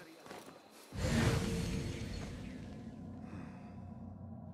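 Air rushes past in a loud whoosh during a high leap.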